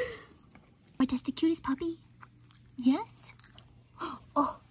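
A young woman talks warmly and close by.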